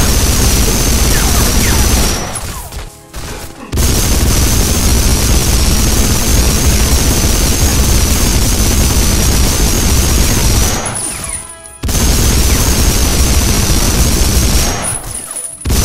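A heavy machine gun fires long, rapid bursts.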